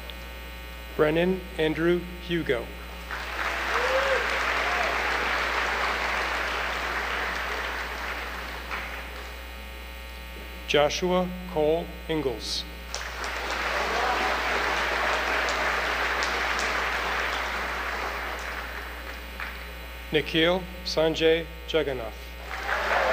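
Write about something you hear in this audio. A man reads out names through a loudspeaker in a large echoing hall.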